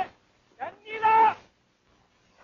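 A man speaks loudly into a microphone outdoors.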